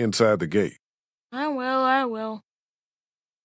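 A man speaks in a worried voice, close by.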